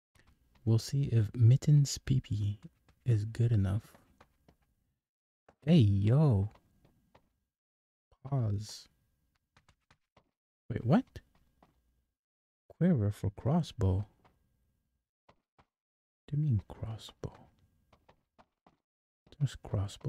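A man talks into a microphone with animation, in short bursts.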